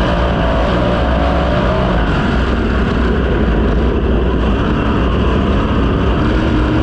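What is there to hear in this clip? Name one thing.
Tyres skid and spray dirt on a loose track.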